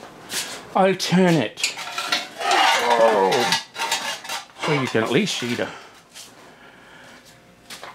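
A heavy metal part clunks down onto a metal stand.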